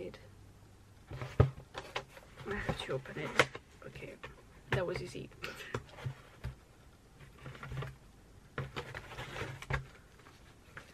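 Paper packaging crinkles and tears as it is opened.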